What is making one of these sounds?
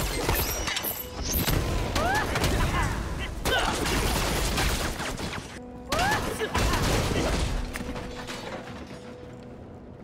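Magic blasts and fiery explosions crash and crackle in a fast fight.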